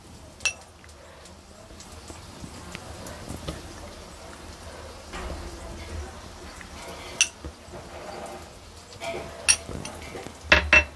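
Food sizzles and crackles softly in hot oil.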